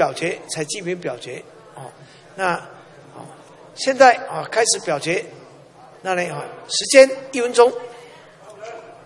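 A man speaks firmly into a microphone in a large hall.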